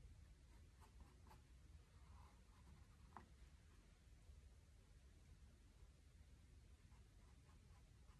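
A small paintbrush dabs and strokes on canvas.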